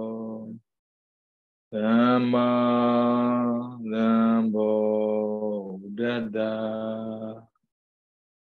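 A man chants in a low, steady voice over an online call.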